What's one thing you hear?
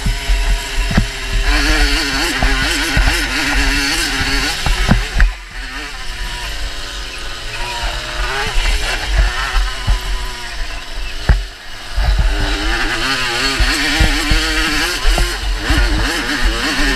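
A motorbike engine revs hard close by, rising and falling in pitch.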